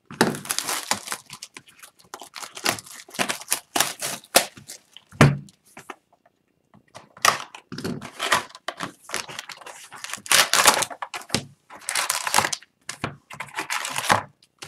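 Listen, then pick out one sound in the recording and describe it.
Plastic wrap crinkles and rustles as hands unwrap a box of cards.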